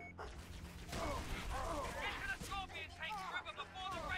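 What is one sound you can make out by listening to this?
Alien creatures chatter and squeal shrilly.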